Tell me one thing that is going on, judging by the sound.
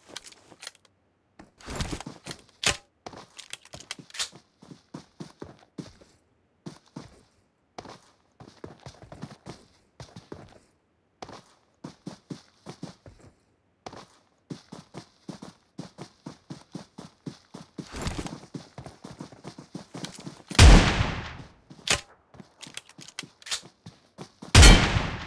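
Footsteps rustle and shuffle through tall grass.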